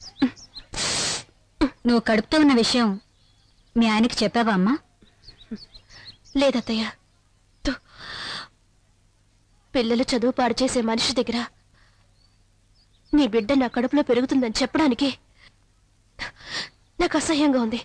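An older woman speaks calmly close by.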